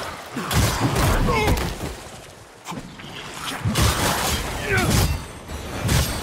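A monstrous creature growls and roars.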